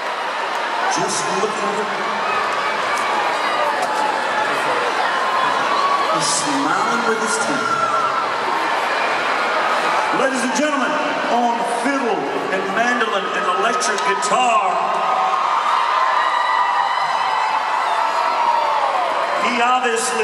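A crowd cheers and shouts in a large arena.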